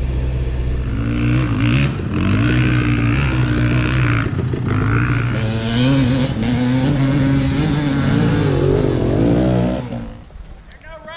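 A dirt bike engine revs up and down nearby.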